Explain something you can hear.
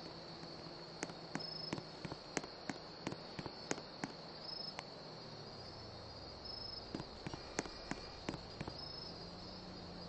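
Footsteps tap quickly on a hard surface.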